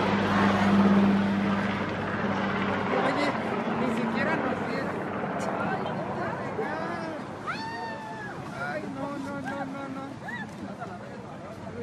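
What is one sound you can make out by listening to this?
A crowd of women chant and shout loudly outdoors.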